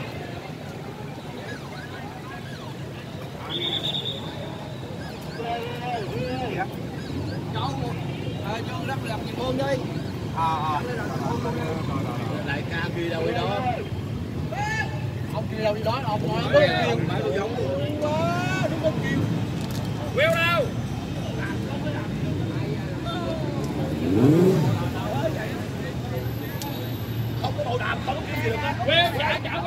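Men and women chatter all around outdoors.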